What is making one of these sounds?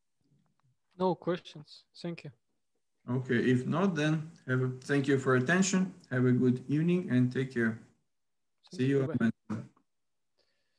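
A young man speaks calmly through an online call microphone.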